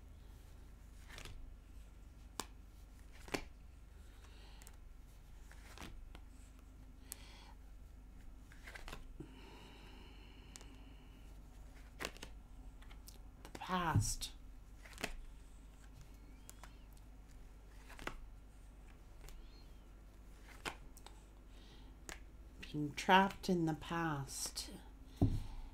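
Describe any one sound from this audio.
Playing cards riffle and tap as they are shuffled.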